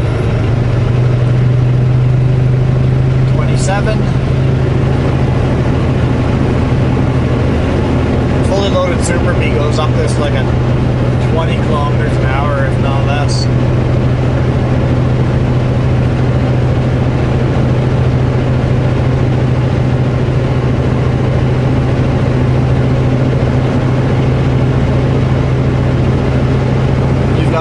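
Tyres roar steadily on the road at speed.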